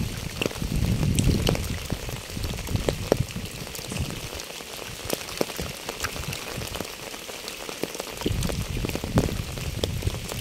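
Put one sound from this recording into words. Rain patters steadily on wet pavement and leaves outdoors.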